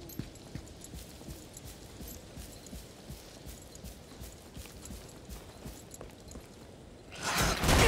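Footsteps patter on grass and stone.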